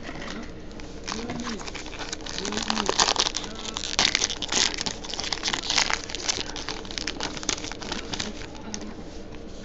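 A foil wrapper crinkles and tears as it is ripped open by hand.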